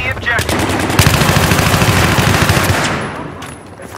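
A rifle fires a rapid, loud burst.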